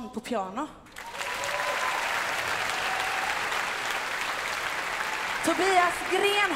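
Children clap their hands.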